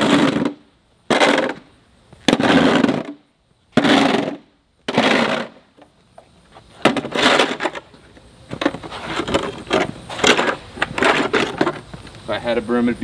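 A metal shovel scrapes across concrete.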